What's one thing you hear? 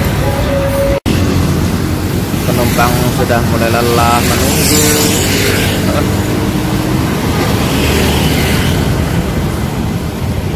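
Traffic and motorbikes pass along a road outdoors.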